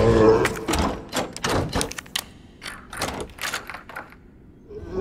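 A key turns in a lock with metallic clicks.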